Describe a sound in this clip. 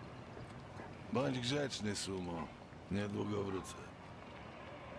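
An older man speaks calmly and briefly in a low, gravelly voice.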